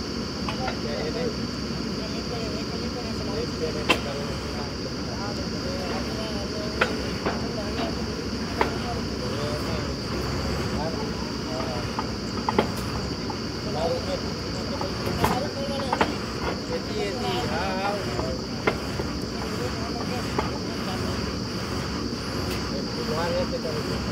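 A drilling rig's diesel engine drones steadily outdoors.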